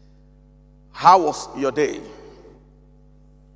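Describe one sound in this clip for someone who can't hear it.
A man speaks with animation into a microphone in a reverberant room.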